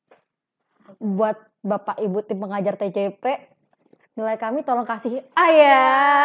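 A second young woman answers, talking with animation.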